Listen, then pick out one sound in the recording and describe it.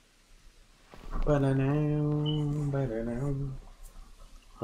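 A man draws out a long, wavering sung note into a microphone.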